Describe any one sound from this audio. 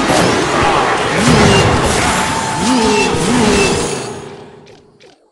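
Video game battle sound effects clash and crackle with loud bursts.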